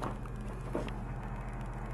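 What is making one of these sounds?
A button clicks on a plastic control unit.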